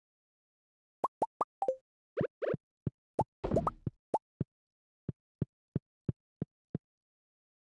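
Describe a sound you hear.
Short bright game chimes sound in a quick series.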